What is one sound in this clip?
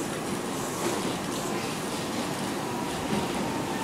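A train rumbles steadily as it approaches along the tracks.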